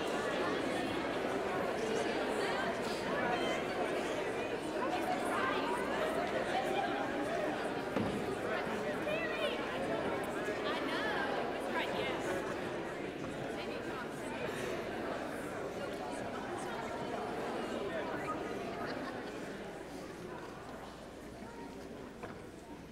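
Many people chat and murmur at once in a large echoing hall.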